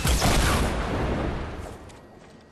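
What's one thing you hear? Gunshots crack in a rapid burst.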